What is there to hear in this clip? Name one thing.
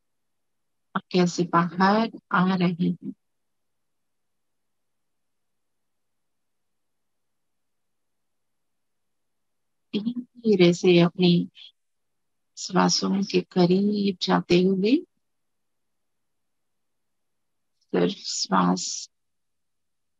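A woman sings softly through an online call, in short phrases with long pauses between them.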